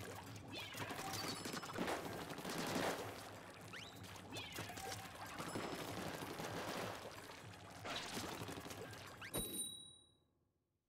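Ink splatters and squishes as a game character sprays it.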